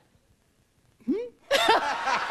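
An elderly woman speaks excitedly into a microphone.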